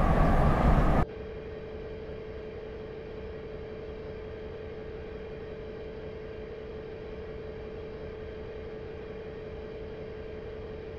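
A diesel locomotive engine hums steadily from inside the cab.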